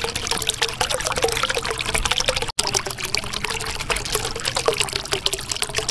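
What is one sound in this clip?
Bubbles gurgle and pop steadily in water.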